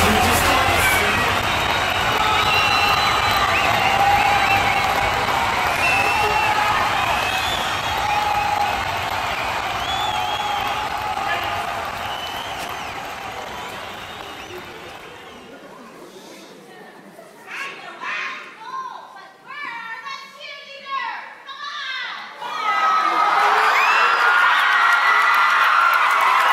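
A crowd of young people cheers and chatters loudly in a large echoing hall.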